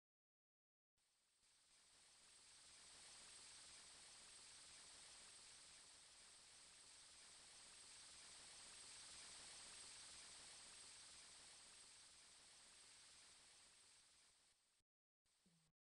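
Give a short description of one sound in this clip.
Water rushes steadily.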